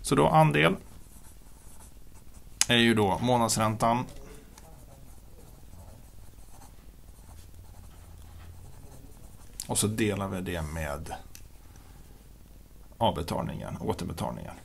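A pen scratches on paper as it writes.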